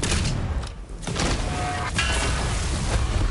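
Explosions blast and crackle.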